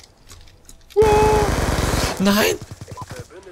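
Rapid automatic gunfire rattles in short bursts.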